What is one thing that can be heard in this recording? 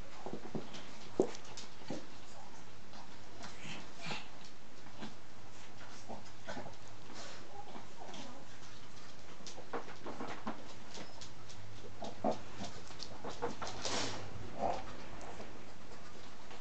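A small dog's claws click and patter on a wooden floor.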